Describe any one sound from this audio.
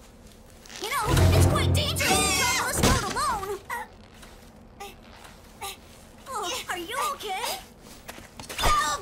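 Heavy blows thud in a scuffle.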